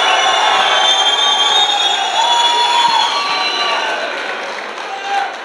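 A crowd applauds outdoors, then the clapping fades.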